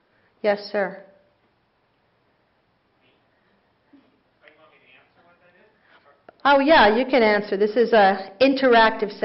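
A middle-aged woman speaks into a microphone.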